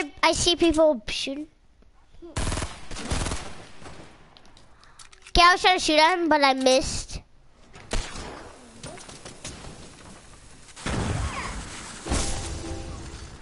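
A rifle fires in short, sharp bursts.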